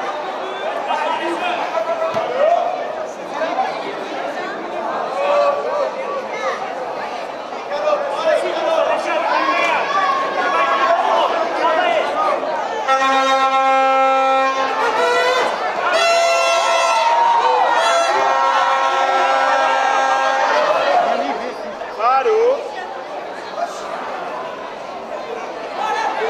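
A crowd of spectators chatters and shouts nearby.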